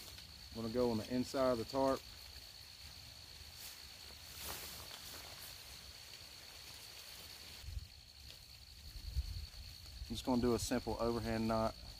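A tarp rustles and flaps as it is handled.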